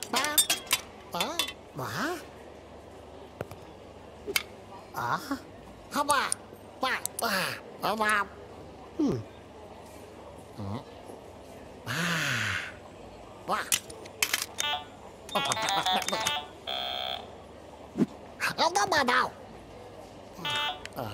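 Cartoon creatures babble and shriek in high, squeaky voices.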